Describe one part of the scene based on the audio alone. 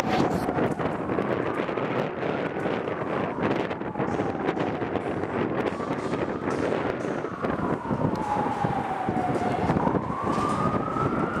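Wind blows hard and buffets outdoors.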